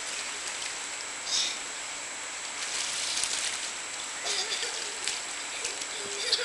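Water splashes as children swim.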